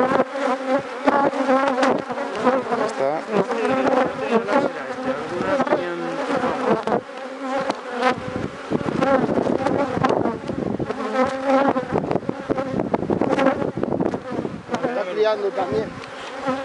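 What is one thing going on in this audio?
A man talks steadily close by.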